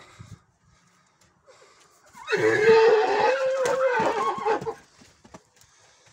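Horses' hooves thud on the ground as they move around.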